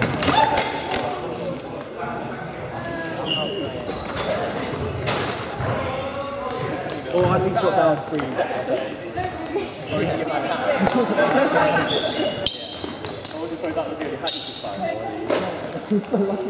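Young women call out and talk with animation in a large echoing hall.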